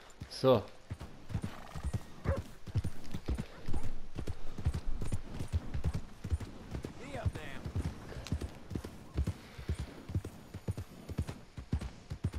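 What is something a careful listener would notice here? Horse hooves thud steadily on a dirt road.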